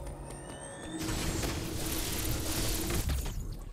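Video game sound effects zap and crackle.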